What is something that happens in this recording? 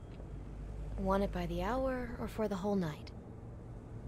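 A young woman asks a question in a weary voice.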